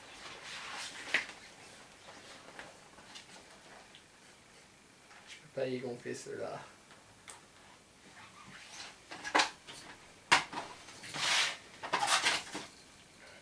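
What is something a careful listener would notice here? Fabric rustles and crinkles as it is handled.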